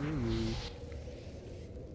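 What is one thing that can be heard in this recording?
A magical blast bursts with a crackling whoosh.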